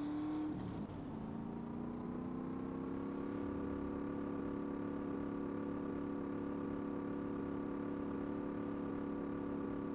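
A motorcycle engine hums steadily at a constant speed.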